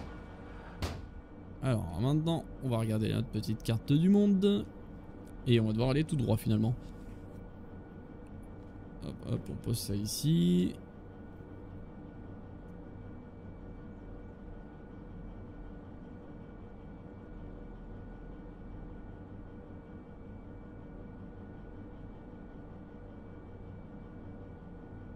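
A diesel locomotive engine idles with a low, steady hum.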